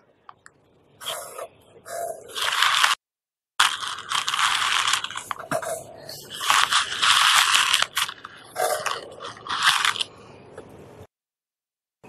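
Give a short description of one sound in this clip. A man coughs and clears his throat.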